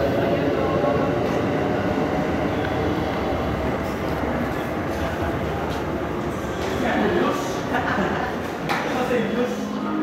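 A train rushes past with a loud, steady roar.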